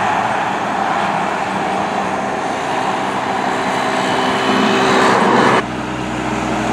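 A fire engine's air horn blares in long blasts.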